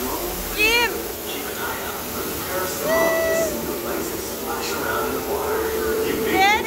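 Men and women on a ride chatter and whoop with excitement close by.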